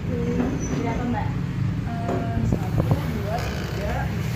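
Paper money rustles as a young woman counts banknotes.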